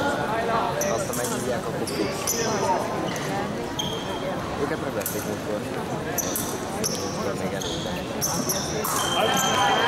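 Shoes squeak sharply on a hard floor as two fencers shuffle back and forth.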